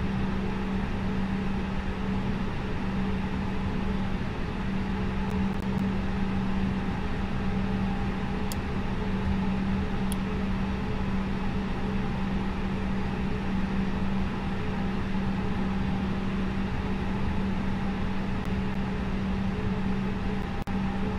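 Jet engines hum steadily at idle as an airliner taxis.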